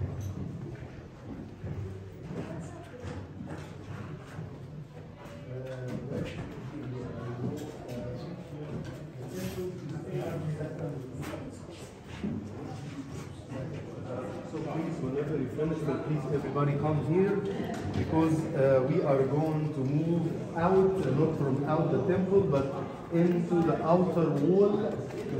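Adult men and women talk nearby in an echoing space.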